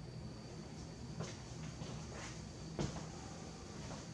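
Footsteps thud on the floor.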